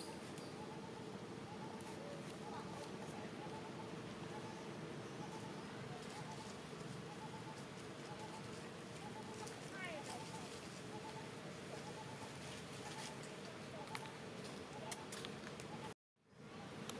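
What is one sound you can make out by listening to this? Leaves rustle as a monkey moves through the branches.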